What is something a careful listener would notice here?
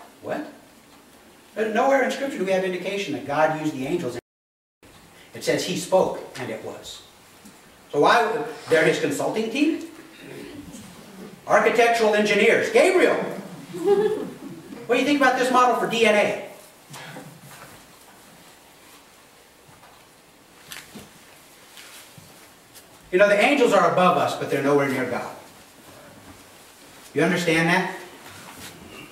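A middle-aged man speaks calmly in a room with a slight echo, pausing between phrases.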